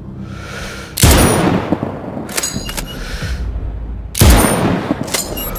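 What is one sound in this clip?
A sniper rifle fires two loud, echoing shots.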